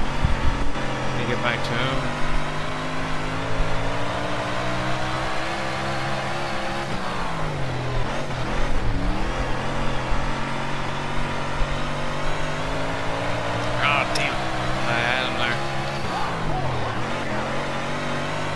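A race car engine roars steadily, its pitch rising and falling as it speeds up and slows down.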